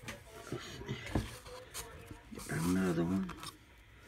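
A stiff paper card rustles as it slides under a clip.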